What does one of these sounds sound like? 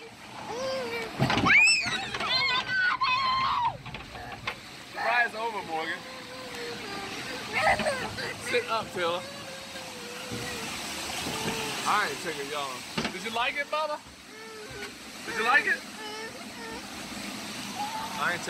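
A young girl cries and whimpers close by.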